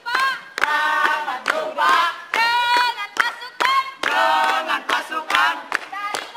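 Young people clap their hands in rhythm.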